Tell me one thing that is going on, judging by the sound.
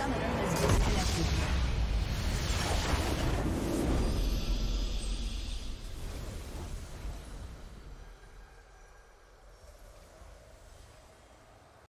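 A game's victory fanfare booms out and slowly fades away.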